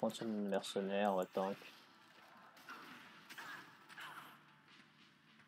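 Magic spells whoosh and strike with sharp bursts.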